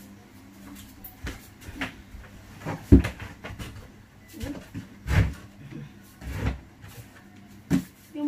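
Footsteps thud on a floor nearby.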